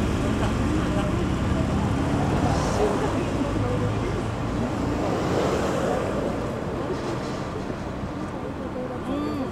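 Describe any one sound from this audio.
Car engines hum and tyres roll past on a road.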